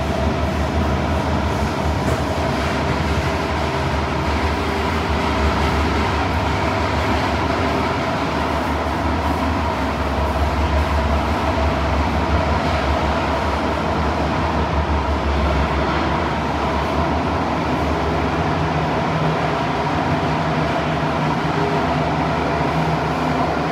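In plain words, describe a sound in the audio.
A train rumbles and hums steadily as it runs along the track.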